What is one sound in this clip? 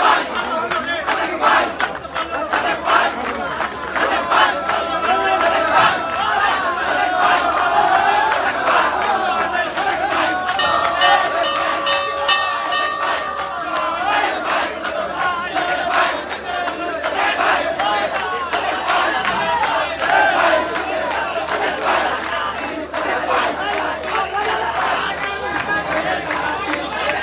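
A large crowd of young men cheers and shouts loudly outdoors.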